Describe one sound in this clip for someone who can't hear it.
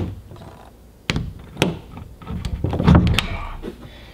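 A metal door handle clicks and rattles as it is turned.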